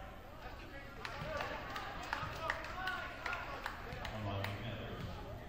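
A basketball bounces on the court, echoing in a large hall.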